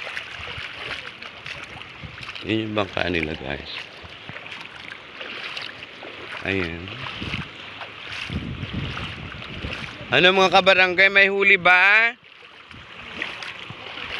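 Small waves lap and splash gently in shallow water outdoors.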